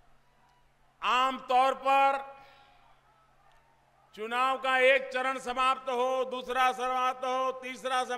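An older man speaks forcefully into a microphone, with his voice ringing out over loudspeakers.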